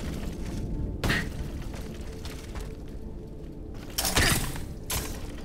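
A body lands with a heavy thud.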